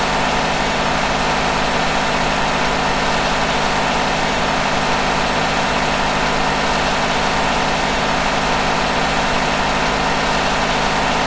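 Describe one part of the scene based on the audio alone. A truck engine drones steadily at high speed.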